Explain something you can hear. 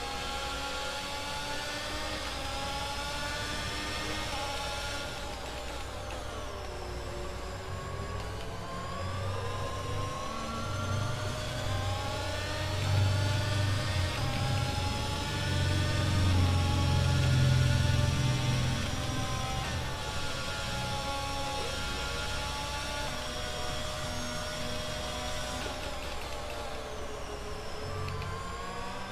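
A racing car engine screams at high revs, rising and falling through the gears.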